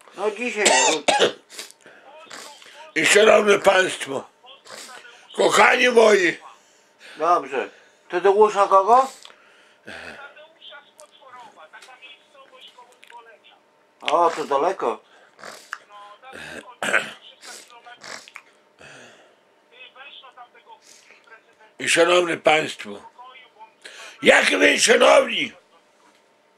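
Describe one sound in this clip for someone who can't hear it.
A middle-aged man speaks loudly and with animation, close by, in short bursts with pauses.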